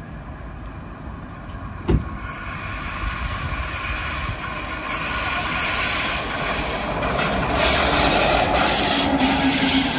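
A diesel locomotive approaches with a growing engine roar.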